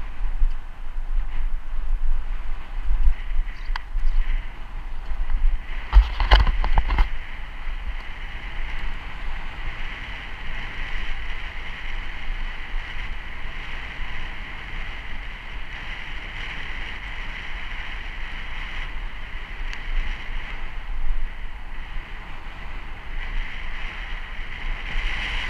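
Bicycle tyres roll steadily over asphalt.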